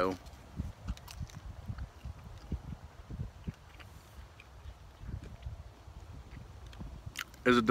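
A man crunches on food.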